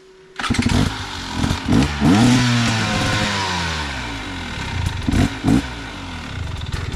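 A dirt bike engine revs loudly nearby, rising and falling in pitch.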